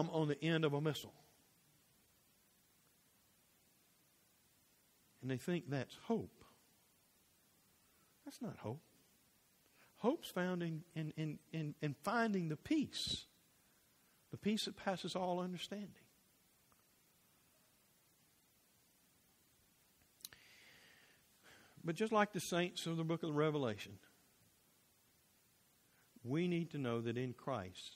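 A middle-aged man speaks calmly through a microphone, with pauses, in an echoing hall.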